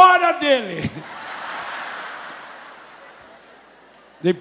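A crowd laughs.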